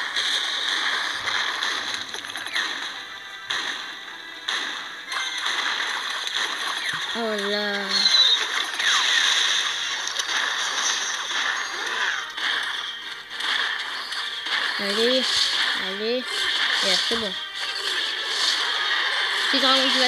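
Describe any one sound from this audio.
Cartoonish battle sound effects clash and crackle from a mobile strategy game.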